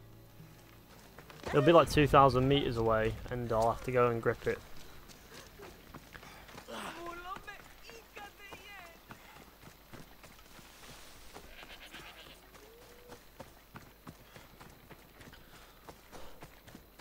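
Footsteps run over dirt and grass.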